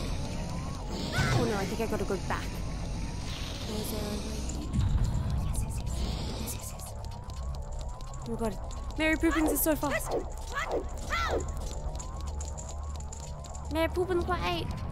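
A young woman speaks casually into a nearby microphone.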